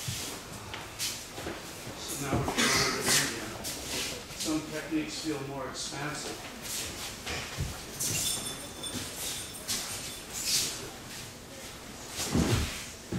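Bare feet slide and shuffle across a mat.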